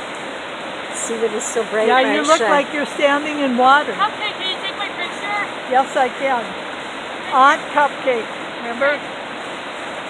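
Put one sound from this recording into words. A young child talks with animation.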